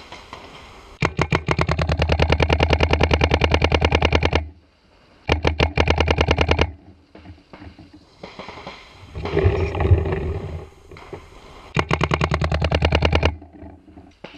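A paintball marker fires rapid bursts of shots close by.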